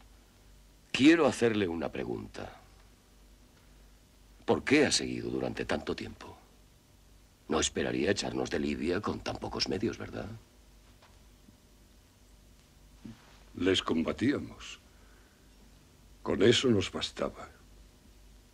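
A middle-aged man speaks firmly, close by, in short bursts.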